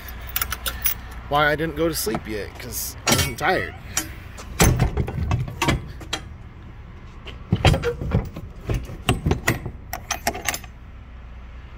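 A metal latch clanks and knocks.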